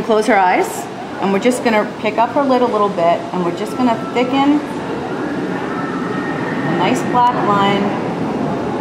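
A woman speaks calmly and closely.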